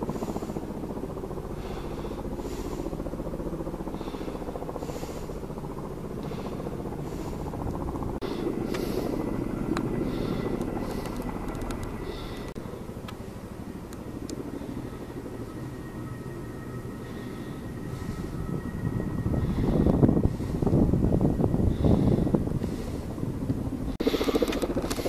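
A helicopter's rotor thuds steadily in the distance.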